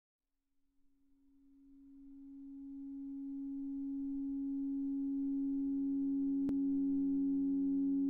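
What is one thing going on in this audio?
A low sustained note rings from piano strings and slowly swells louder.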